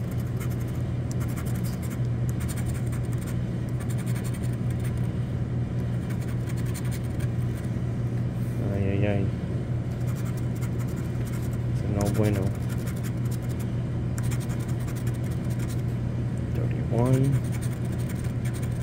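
A pencil scratches and scrapes across a card.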